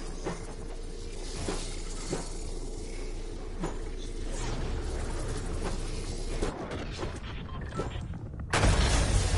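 Footsteps thud quickly on hard floors in a game.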